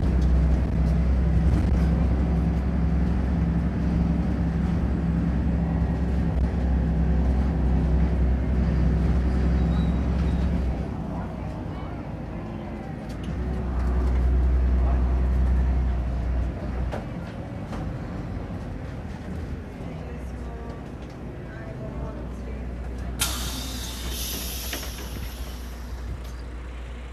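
A vehicle engine rumbles low and steadily from inside the vehicle.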